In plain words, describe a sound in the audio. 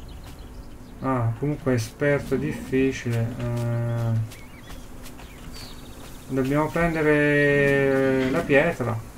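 A young man speaks animatedly into a microphone, close up.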